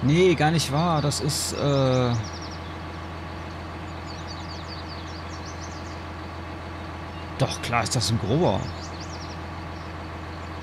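A tractor engine idles with a steady low hum.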